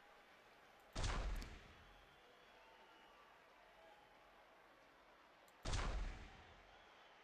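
A game sound effect chimes briefly.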